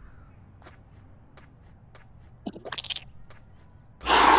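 Soft paws patter on grass.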